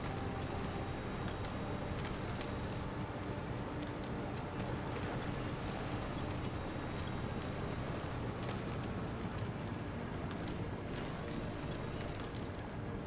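Tyres crunch over gravel and snow.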